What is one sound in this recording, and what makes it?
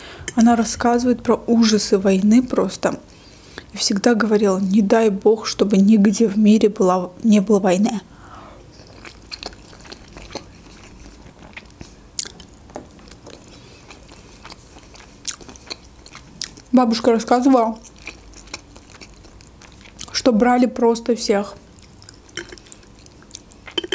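Cutlery clinks and scrapes on a plate.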